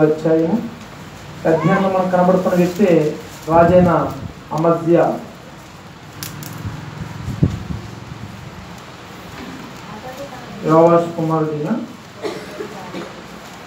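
A man speaks with feeling into a microphone, heard through a loudspeaker in an echoing room.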